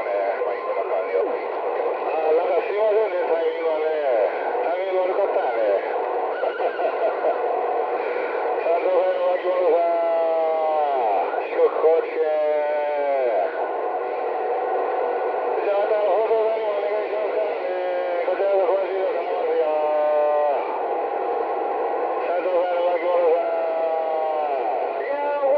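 A radio receiver plays a crackly, narrow-sounding transmission through its small speaker.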